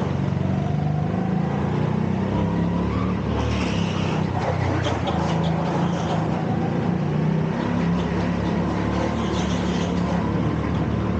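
A go-kart engine hums and whines steadily up close, rising and falling in pitch.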